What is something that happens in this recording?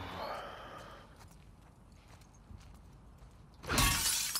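Footsteps shuffle softly over a gritty floor.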